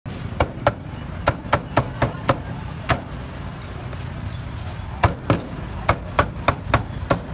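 A cleaver chops through roast duck in quick, sharp knocks.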